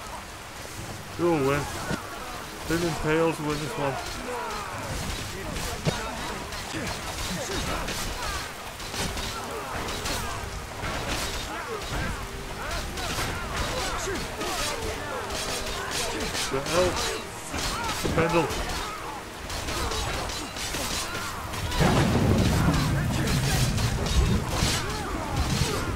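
Swords and weapons clash and clang.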